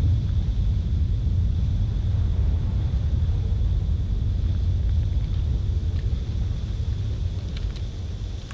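A deep rumbling hum throbs loudly from a swirling vortex.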